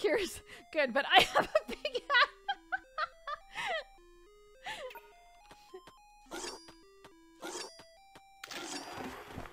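A simple electronic game melody plays in short, stepping notes.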